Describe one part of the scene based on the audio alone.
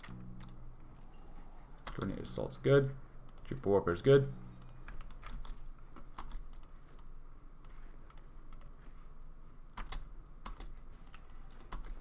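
Short game interface clicks tick now and then.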